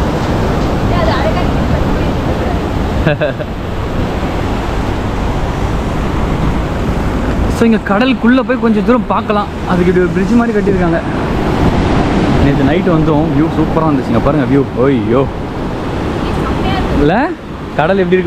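Waves crash and wash against a sea wall.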